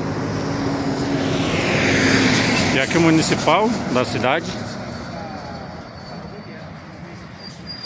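A bus drives past close by with a loud engine roar.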